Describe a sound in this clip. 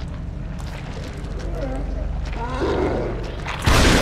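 A monster growls and groans hoarsely nearby.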